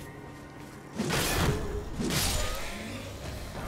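A sword whooshes through the air in quick swings.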